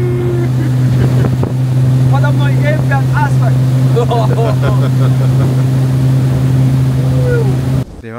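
Young men laugh and shout over the engine noise.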